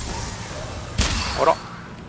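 A bowstring snaps as an arrow is loosed with a sharp whoosh.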